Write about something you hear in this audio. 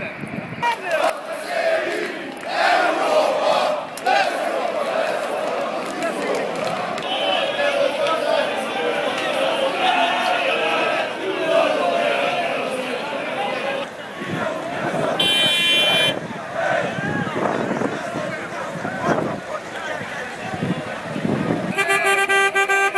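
A large crowd of men chants and cheers loudly outdoors.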